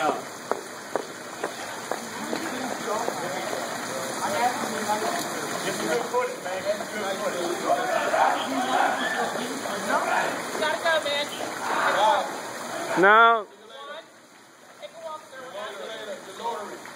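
Men talk at a distance outdoors.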